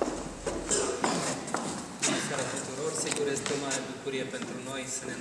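A middle-aged man speaks through a microphone.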